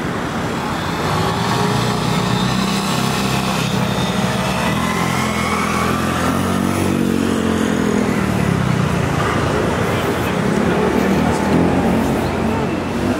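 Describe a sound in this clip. A car engine drives past close by.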